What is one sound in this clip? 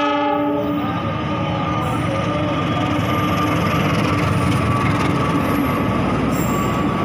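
A diesel locomotive engine rumbles loudly as it passes close by.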